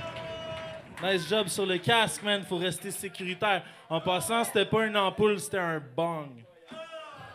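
A man raps rapidly into a microphone through loudspeakers in a large echoing room.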